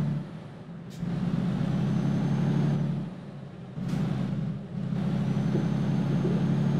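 A truck engine hums low, dropping off briefly and then picking up again.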